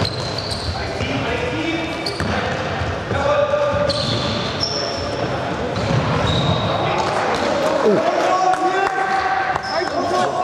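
Sneakers squeak sharply on a hall floor.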